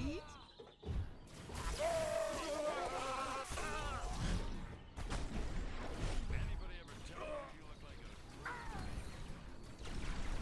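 Energy beams crackle and zap in rapid bursts.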